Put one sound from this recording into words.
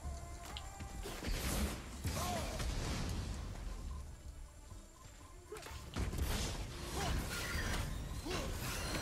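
Fiery blasts burst and roar.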